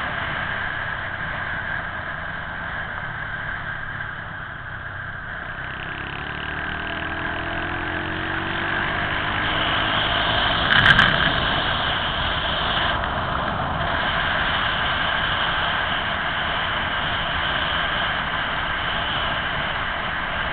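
Wind rushes past, loud and steady.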